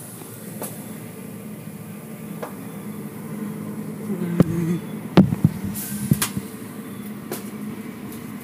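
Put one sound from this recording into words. A car wash machine hums steadily.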